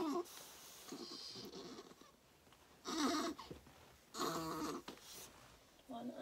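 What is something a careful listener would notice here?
Clothing rustles as a baby is handled.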